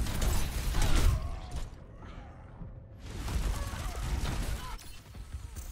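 Gunshots and blasts crackle in a fast fight.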